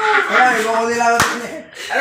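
Hands clap a few times.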